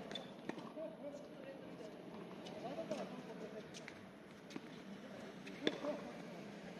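Tennis balls are struck with rackets in the distance, with sharp pops.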